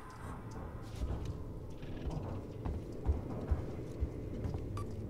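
Slow footsteps thud on a hard floor.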